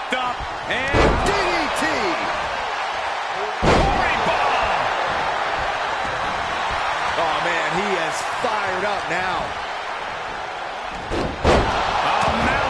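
Heavy thuds of bodies slamming onto the ring mat.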